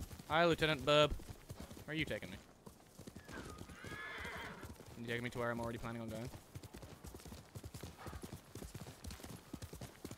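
A horse gallops with quick, thudding hoofbeats.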